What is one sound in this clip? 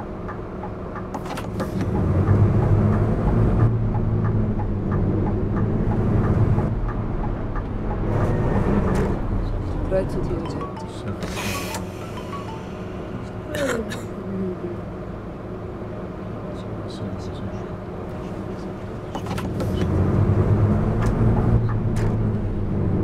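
A bus engine rumbles and revs up as the bus pulls away.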